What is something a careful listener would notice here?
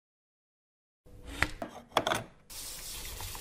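A plug clicks into a socket.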